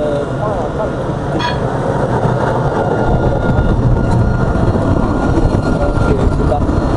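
A tram's electric motor whines steadily.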